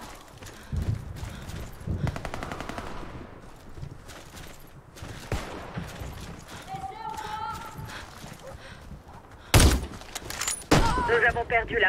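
Gunshots and explosions boom loudly.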